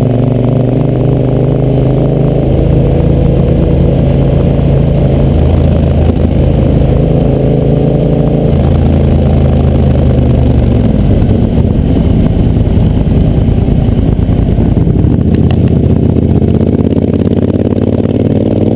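A motorcycle engine hums steadily up close, shifting pitch as gears change.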